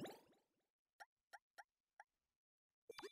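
A game menu cursor ticks softly from item to item.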